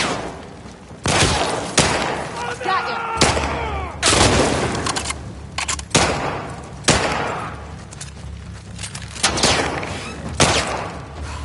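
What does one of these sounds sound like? Gunshots ring out loudly and echo.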